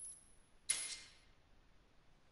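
A bright menu chime sounds and quickly fades.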